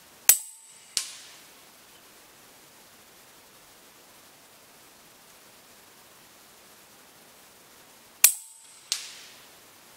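A slug strikes a metal target with a faint clang a moment later.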